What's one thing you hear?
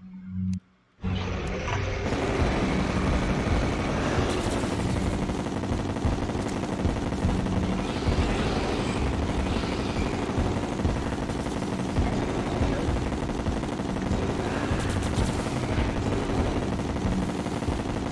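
Loud, busy battle music with crashing game effects plays.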